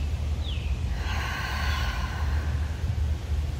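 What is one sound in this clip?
A young woman breathes out slowly and deeply.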